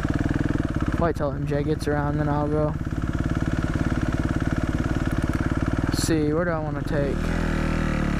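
A dirt bike engine revs up and down in short bursts.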